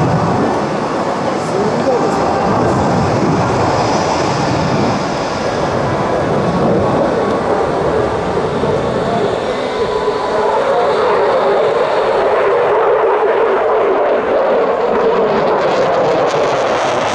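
A jet engine roars loudly overhead, rumbling and crackling as the aircraft banks.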